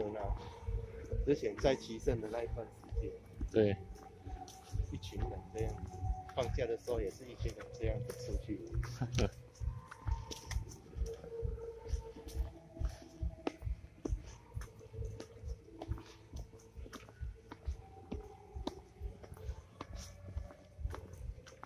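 Footsteps walk steadily on a paved path outdoors.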